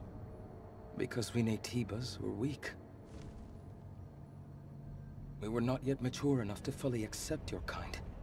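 A young man speaks calmly and slowly in a game scene.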